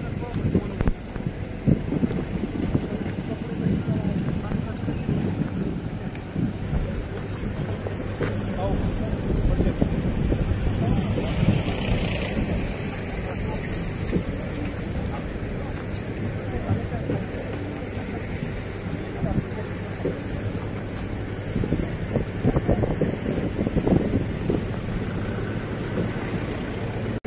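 Men talk among themselves outdoors.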